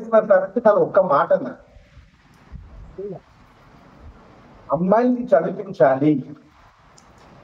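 A middle-aged man speaks with animation through a microphone, echoing in a hall.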